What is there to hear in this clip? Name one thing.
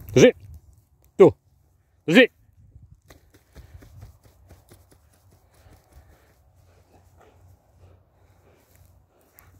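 A dog trots through dry stubble with soft rustling footsteps.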